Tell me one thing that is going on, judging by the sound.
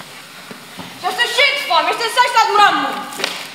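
A young woman sings loudly in an echoing hall.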